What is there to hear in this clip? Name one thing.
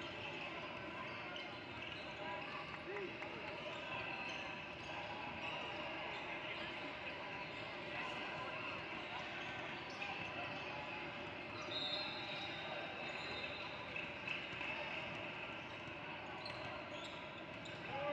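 Many voices of players and spectators chatter in a large echoing hall.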